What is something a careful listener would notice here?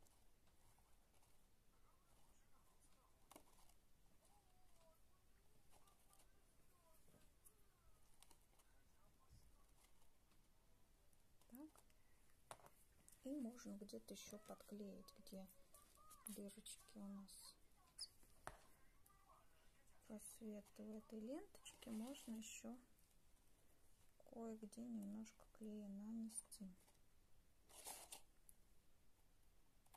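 Paper and card rustle softly as they are handled.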